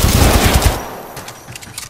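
A gun fires in a loud, rapid burst.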